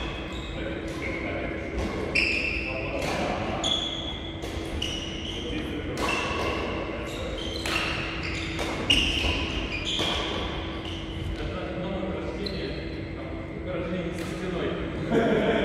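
Rackets strike shuttlecocks with sharp pops in a large echoing hall.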